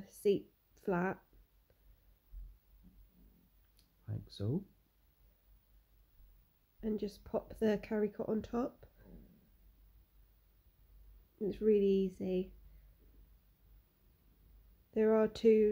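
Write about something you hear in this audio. A woman talks calmly close by, pausing now and then.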